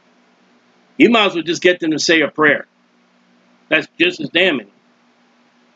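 A man speaks calmly and closely into a microphone, in short bursts.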